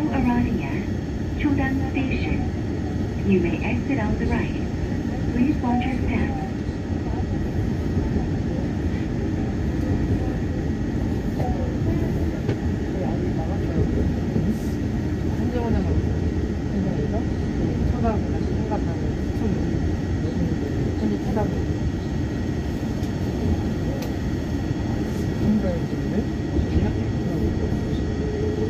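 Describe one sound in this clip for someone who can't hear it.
A train rumbles steadily along an elevated track.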